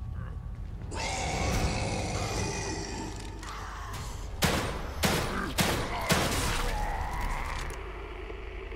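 A monster growls and roars close by.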